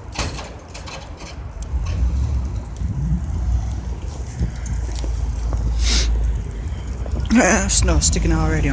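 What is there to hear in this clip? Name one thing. A pickup truck engine rumbles as it plows snow nearby.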